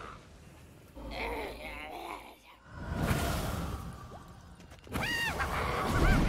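Flames burst and crackle.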